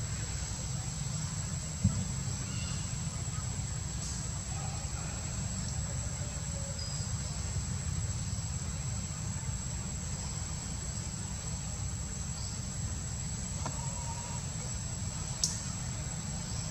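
Monkeys shift about and rustle the branches of a tree.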